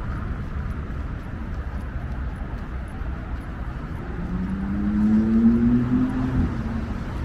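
Bicycle tyres roll over smooth pavement.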